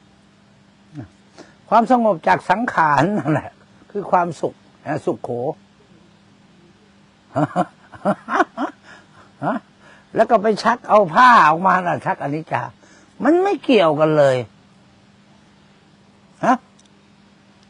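A middle-aged man speaks calmly into a clip-on microphone, with pauses.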